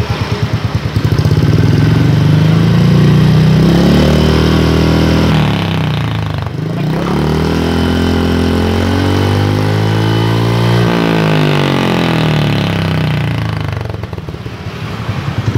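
A motorcycle engine revs up and down, rising and falling in pitch.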